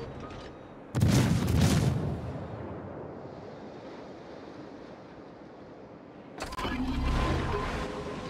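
Heavy ship guns fire booming salvos that rumble away.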